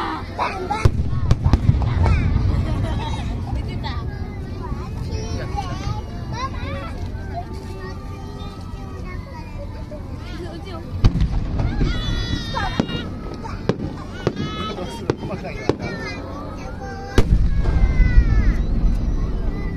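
Fireworks crackle and pop after bursting.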